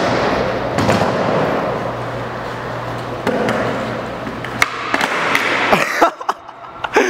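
Skateboard wheels roll loudly over a concrete floor.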